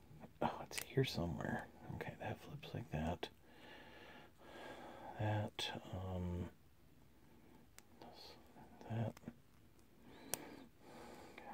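Small plastic parts click and snap as they are handled.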